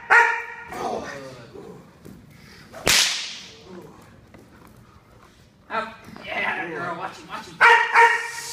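A man shouts commands at a dog.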